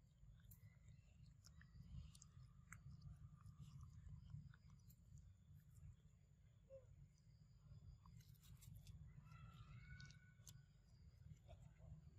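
A monkey tears and chews soft fruit up close.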